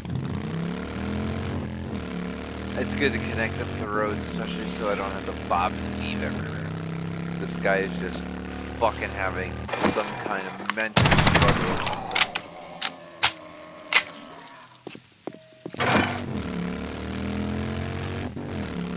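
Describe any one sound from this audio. A motorbike engine drones and revs.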